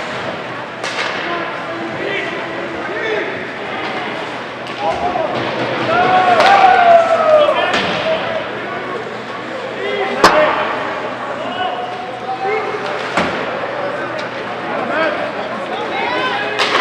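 A crowd of spectators chatters and calls out in an echoing rink.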